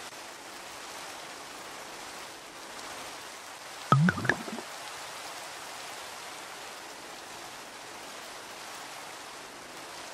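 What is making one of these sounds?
Liquid bubbles softly in a brewing pot.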